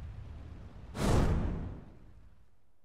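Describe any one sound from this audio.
A sharp whoosh sweeps past.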